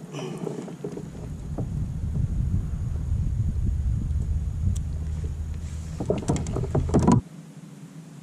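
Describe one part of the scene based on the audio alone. Wind rumbles across a microphone outdoors.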